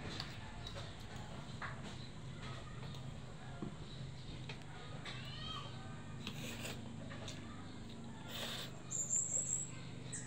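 Children's forks clink on a plate.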